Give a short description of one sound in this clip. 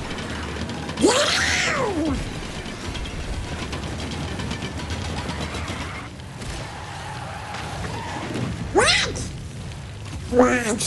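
Sweeping whooshes rise and fall.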